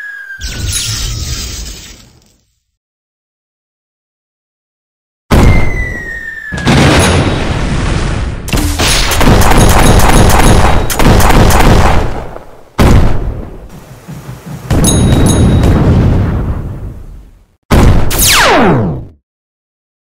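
Cartoon explosions boom and crackle in a game.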